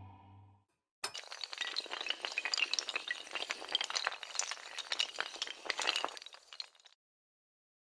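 Hard tiles topple and clatter against each other in a rapid cascade.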